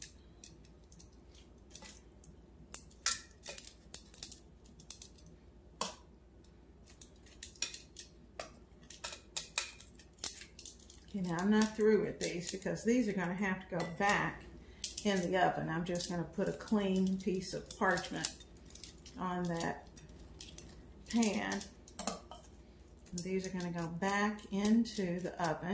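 Metal tongs clink against a metal pot.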